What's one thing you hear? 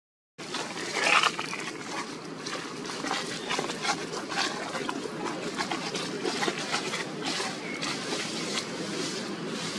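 A monkey chews food with soft crunching.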